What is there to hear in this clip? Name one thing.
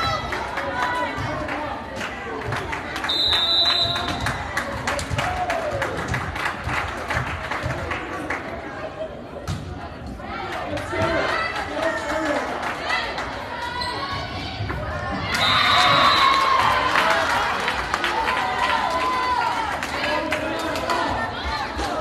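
A crowd chatters and cheers loudly in an echoing gym.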